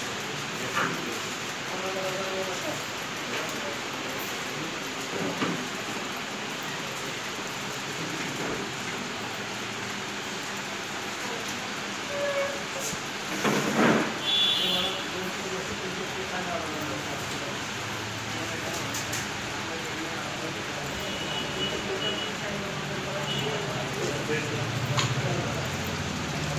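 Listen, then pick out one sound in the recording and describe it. A man talks calmly nearby in a room.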